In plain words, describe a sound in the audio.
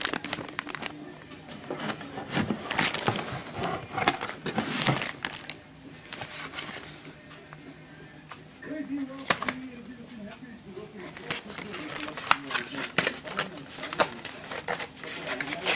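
Cardboard packaging scrapes and rustles as it is handled.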